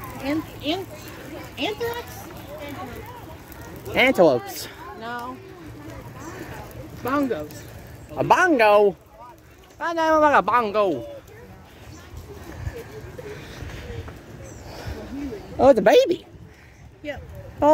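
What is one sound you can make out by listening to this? Women and children talk and call out nearby outdoors.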